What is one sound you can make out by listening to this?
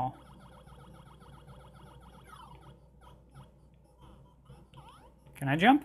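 A handheld game console plays quick, chirpy electronic beeps.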